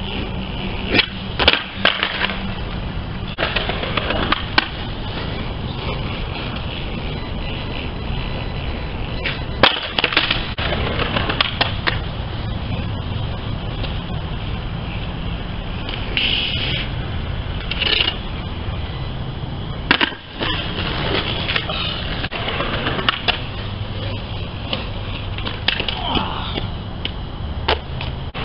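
A skateboard deck clacks sharply against the ground.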